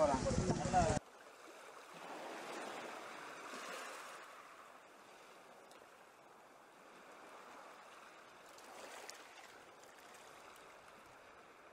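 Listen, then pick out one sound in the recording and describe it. Water splashes softly around a wading man's legs.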